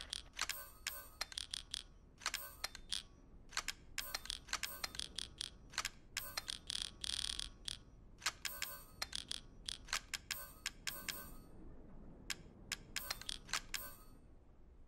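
Short electronic menu clicks and blips sound in quick succession.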